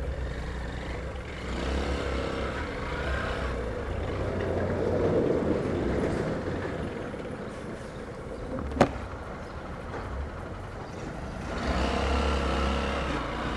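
A motorcycle engine idles and revs up close by.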